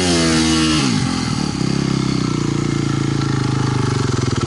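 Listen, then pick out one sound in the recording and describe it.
A dirt bike engine idles with a rapid, rattling putter.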